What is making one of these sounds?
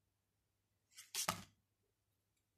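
A card is laid down with a soft tap.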